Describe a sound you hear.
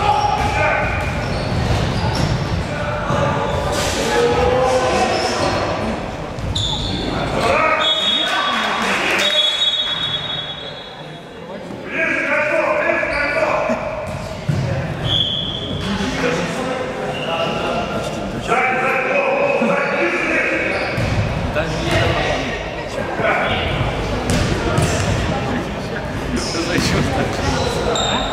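Young players shout and call to each other in a large echoing gym.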